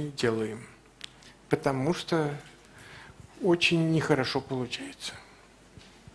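A man speaks calmly into a headset microphone in short phrases.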